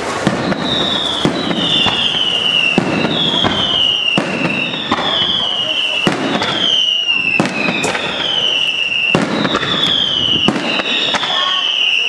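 Fireworks crackle in the sky.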